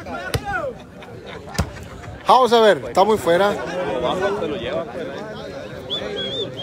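A crowd of men shouts and cheers loudly nearby.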